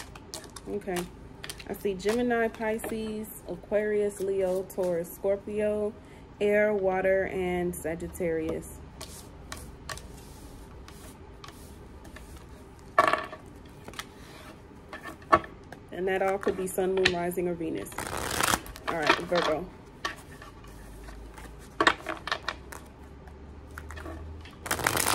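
Cards tap and slide on a table.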